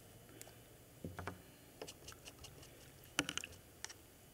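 Small paint jars knock and clink on a table.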